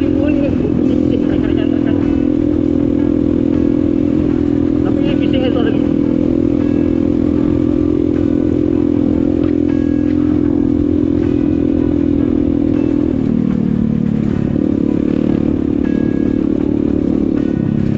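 A motorbike engine hums steadily up close, dropping in pitch near the end.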